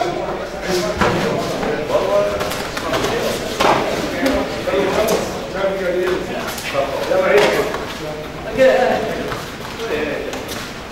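Bodies thud onto a padded mat as people are thrown.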